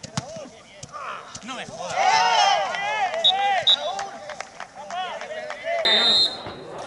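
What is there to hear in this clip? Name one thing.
Footballers shout and call out across an open pitch.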